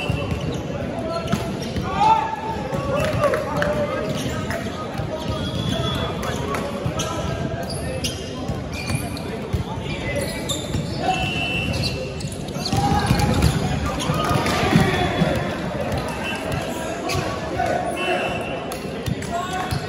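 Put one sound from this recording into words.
Players' shoes squeak on a wooden court.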